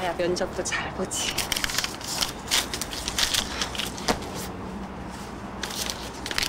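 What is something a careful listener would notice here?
Paper bills rustle in a wallet.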